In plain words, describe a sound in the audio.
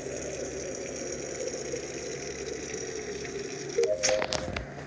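Water gurgles steadily as it pours from one jug into another.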